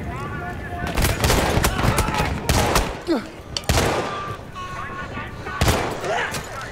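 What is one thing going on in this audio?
A revolver fires loud shots that echo.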